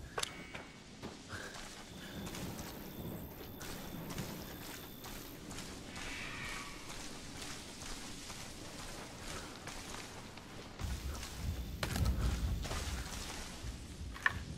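Footsteps crunch and rustle through undergrowth.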